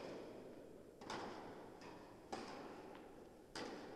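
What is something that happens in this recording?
A tennis ball bounces on the court.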